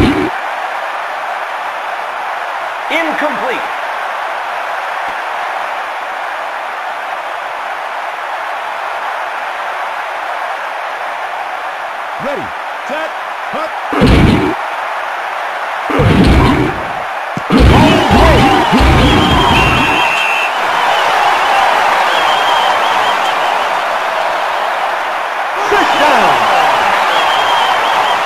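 A large crowd roars steadily, swelling louder at times.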